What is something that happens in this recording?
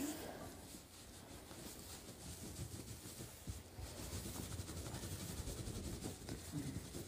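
Straw rustles as a newborn foal is rubbed with a towel.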